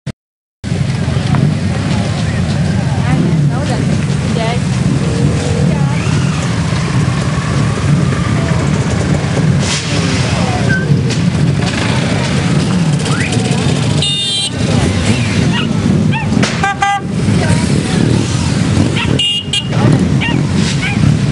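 Motorcycle engines rumble steadily as riders pass close by.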